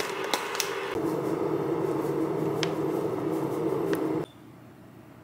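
Flour pours from a bag into a glass bowl.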